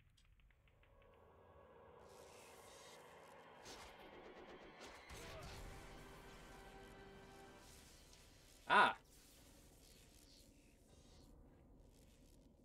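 Electricity crackles and buzzes around a sword.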